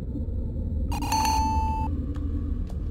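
A short electronic chime sounds as a game character gulps an air bubble.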